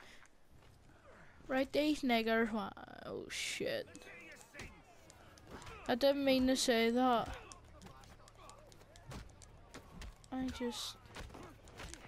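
Men shout and grunt during a brawl.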